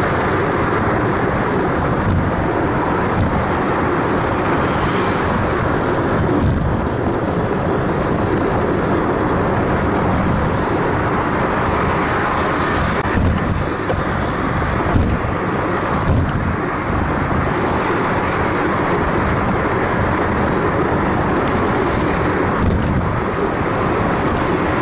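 Wind rumbles loudly over a moving car.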